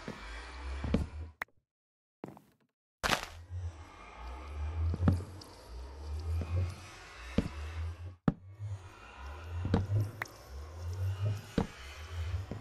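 Wooden blocks break with short, dry knocks and crunches.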